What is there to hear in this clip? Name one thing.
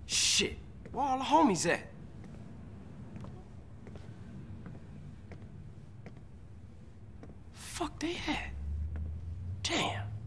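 A young man swears with frustration, close by.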